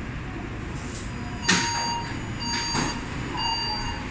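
Train doors slide open.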